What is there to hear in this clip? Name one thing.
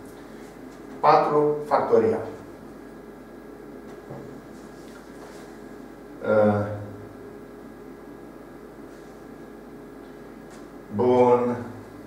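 A man speaks in short bursts, close by, in a room with some echo.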